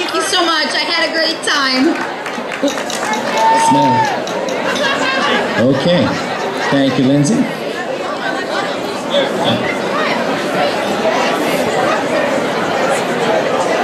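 A woman sings into a microphone, heard through loudspeakers in a large echoing hall.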